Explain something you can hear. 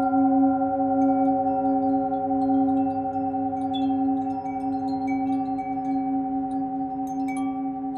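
A singing bowl hums with a steady, wavering ring as a mallet circles its rim.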